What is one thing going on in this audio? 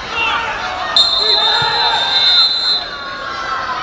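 A referee's whistle blows a long, shrill blast.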